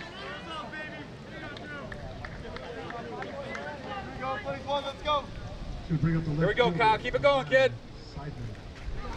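A crowd of men chatter and call out outdoors.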